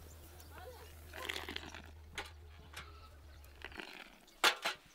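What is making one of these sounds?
Tea pours in a thin stream into a small glass.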